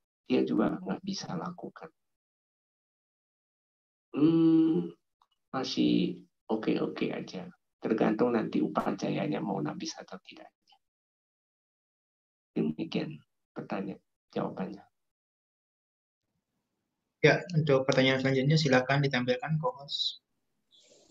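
A woman speaks calmly into a microphone, heard through an online call.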